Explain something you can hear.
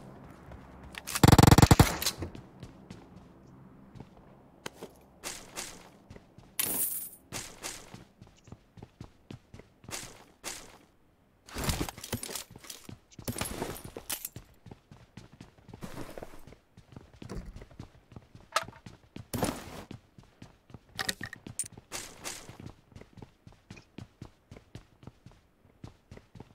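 Footsteps patter quickly on wooden floors.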